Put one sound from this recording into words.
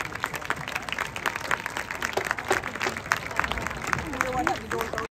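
Snare drums tap out a quick rhythm outdoors.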